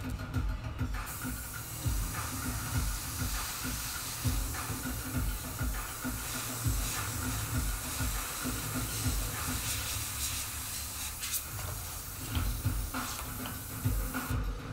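An airbrush hisses steadily as it sprays paint.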